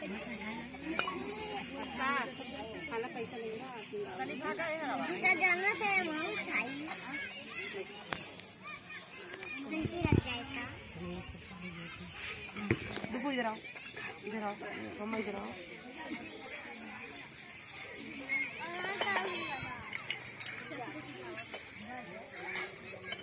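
A woman talks and chants nearby.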